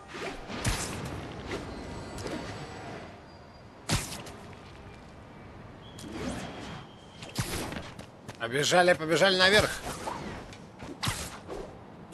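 Web lines zip and whoosh as a figure swings through the air.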